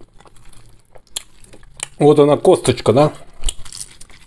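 Boiled meat squelches and tears between fingers.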